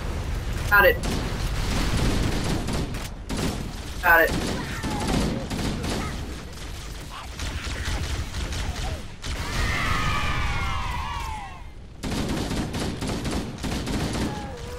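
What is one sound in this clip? Two young men talk and react excitedly near a microphone.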